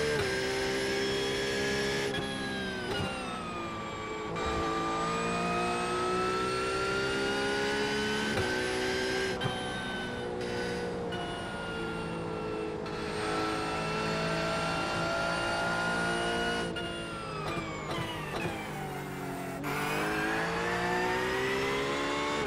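A racing car engine roars, rising and falling in pitch as it shifts gears.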